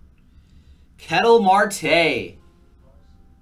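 A man exclaims with excitement into a microphone.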